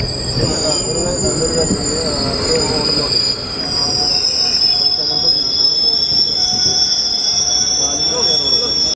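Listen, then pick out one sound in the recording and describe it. Train wheels squeal shrilly on the rails.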